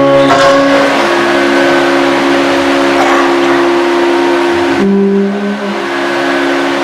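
A large crowd chants together in a large echoing hall.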